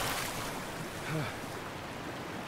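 A man gasps for breath.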